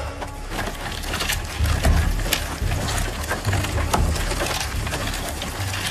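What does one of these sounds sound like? A heavy log scrapes along the ground as it is dragged.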